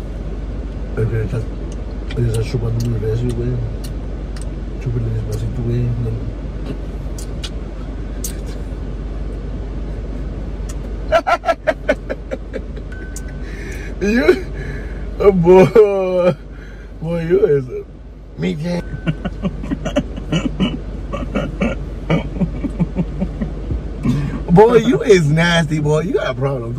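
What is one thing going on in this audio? A middle-aged man laughs close by.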